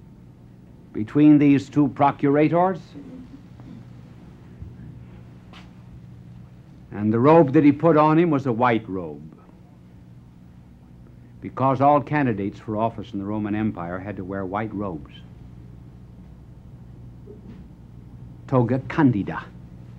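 A middle-aged man speaks slowly and deliberately, with pauses, heard through an old microphone.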